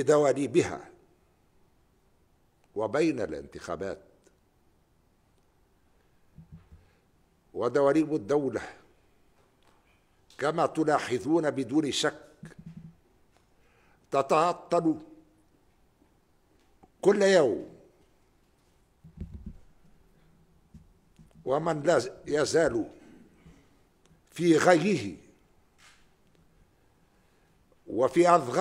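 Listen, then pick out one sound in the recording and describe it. An elderly man speaks slowly and firmly into a microphone, with long pauses between phrases.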